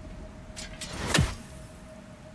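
An axe strikes metal with a ringing clang.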